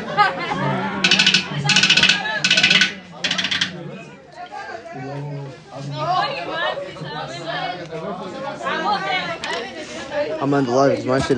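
Drums and cymbals are played in short bursts.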